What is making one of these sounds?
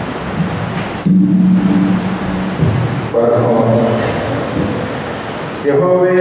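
A second man reads aloud through a microphone, amplified in an echoing hall.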